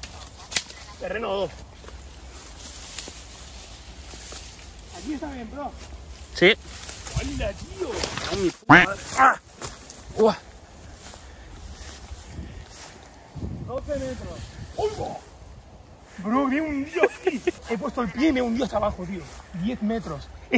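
A man speaks close by, slightly out of breath.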